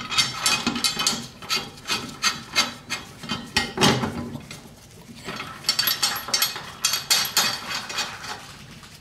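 A metal mower blade clicks and rattles as it is turned by hand.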